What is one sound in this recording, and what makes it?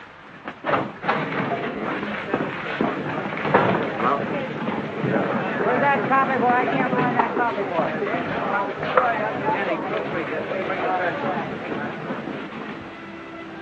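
Many voices chatter at once in a busy room.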